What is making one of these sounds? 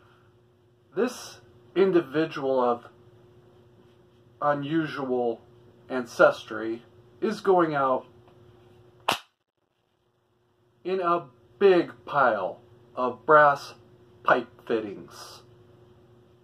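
A man speaks calmly and close by, in short phrases.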